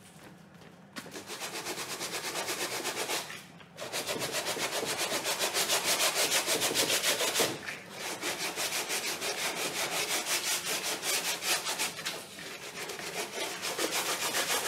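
A cloth scrubs quickly and rhythmically against a canvas.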